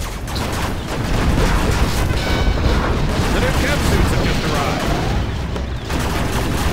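Gunfire and laser blasts crackle rapidly.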